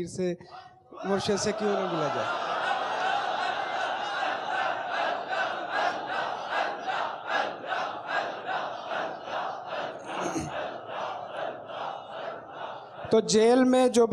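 A large crowd of men chants together in a steady rhythm, echoing in a large hall.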